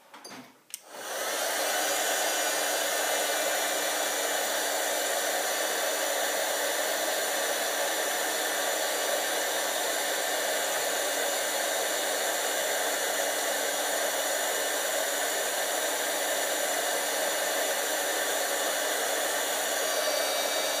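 A heat gun blows with a steady, loud whirring roar.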